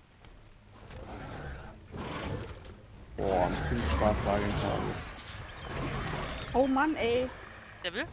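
Large wings flap and whoosh in flight.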